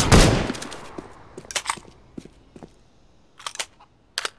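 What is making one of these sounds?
Footsteps tap lightly on hard ground.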